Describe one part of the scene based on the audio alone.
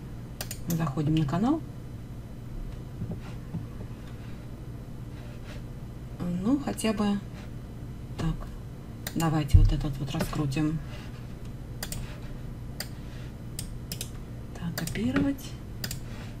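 A woman speaks calmly into a microphone, in short bursts.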